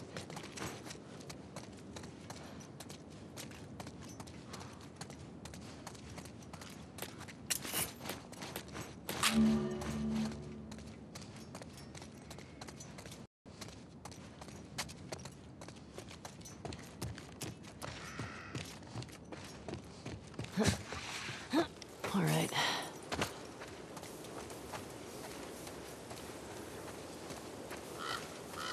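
Footsteps tread steadily.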